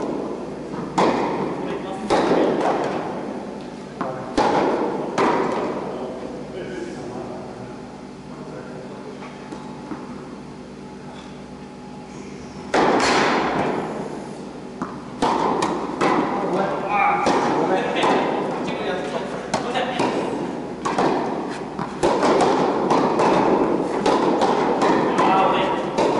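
Tennis balls are struck by rackets with sharp pops that echo in a large indoor hall.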